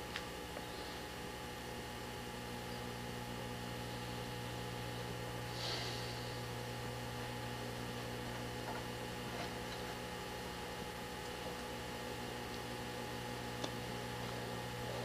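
A forklift engine hums steadily.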